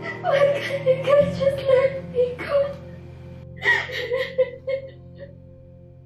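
A young woman sobs and cries out in distress.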